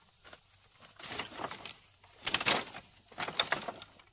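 Sticks rattle and scrape as they are piled up.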